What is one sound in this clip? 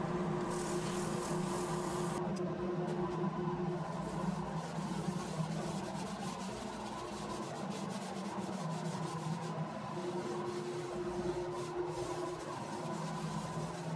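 Sandpaper rubs against spinning wood with a soft hiss.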